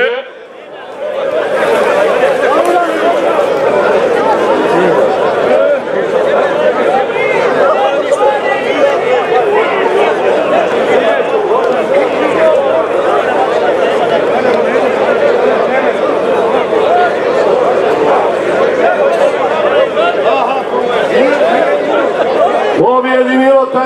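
A crowd of men talk and call out outdoors.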